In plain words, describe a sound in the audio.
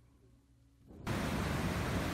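Ocean waves crash and rush onto a beach.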